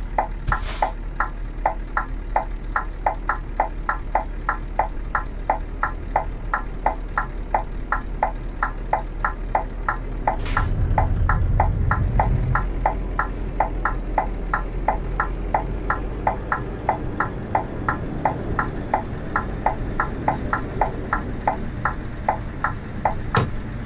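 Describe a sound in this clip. A turn signal ticks in a quick, even rhythm.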